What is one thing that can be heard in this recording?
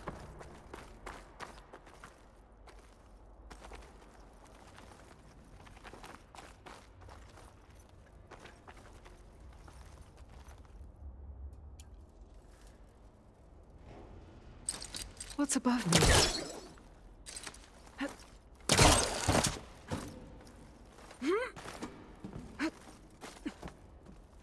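Footsteps patter on a hard, wet floor.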